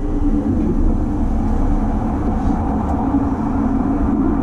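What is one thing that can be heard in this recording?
A passing train rushes by close outside.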